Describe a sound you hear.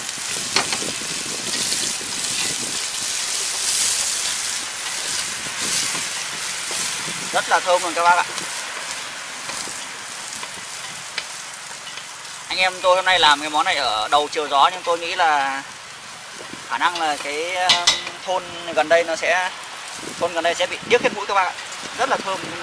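Chopsticks scrape and tap against a metal pot while stirring.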